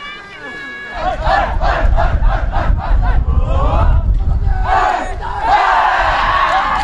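A group of young men shout and cheer together outdoors.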